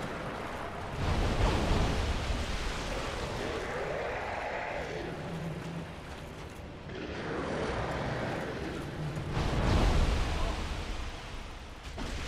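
Heavy blasts rumble deeply.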